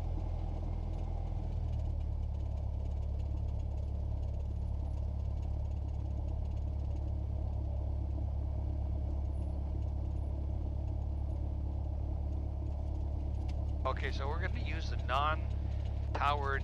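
A small propeller plane's engine drones steadily close by.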